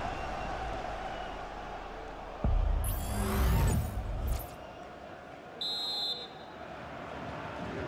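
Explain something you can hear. A large stadium crowd roars and chants steadily.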